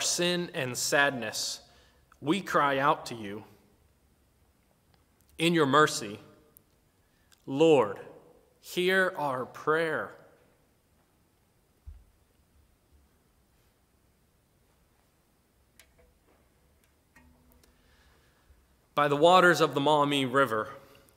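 A man speaks calmly and slowly, close to a microphone, with long pauses.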